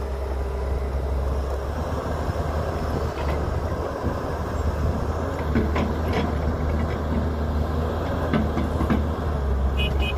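Dirt and clods thud into a truck bed.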